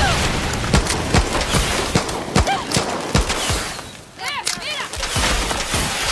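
Explosions boom and debris scatters.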